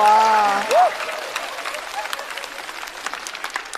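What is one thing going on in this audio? An audience claps lightly.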